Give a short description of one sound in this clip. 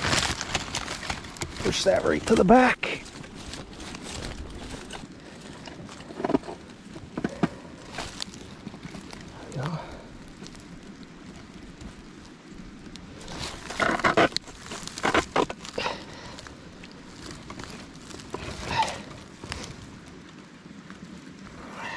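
Dry grass and twigs rustle and crackle close by.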